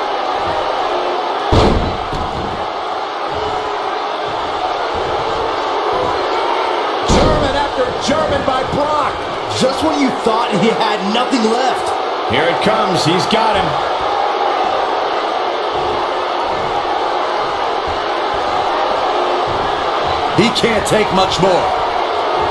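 A large crowd roars steadily in a big echoing arena.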